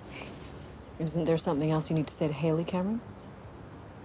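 A middle-aged woman speaks close by.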